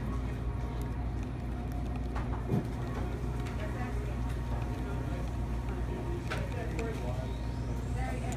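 A plastic stick stirs coffee in a paper cup.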